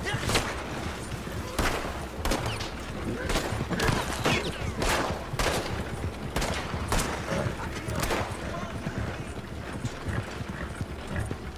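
Horse hooves clop steadily on dry ground.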